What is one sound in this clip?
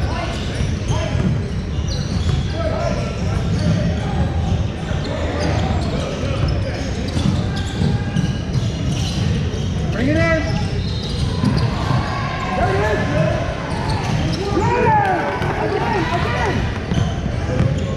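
Young people shout and chatter in a large echoing gym.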